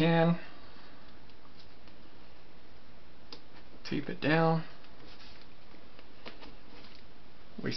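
Paper rustles softly as hands adjust it.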